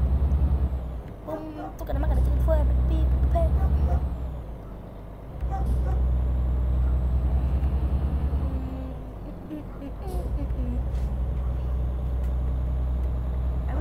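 A truck's diesel engine rumbles steadily, pulsing as it speeds up and slows.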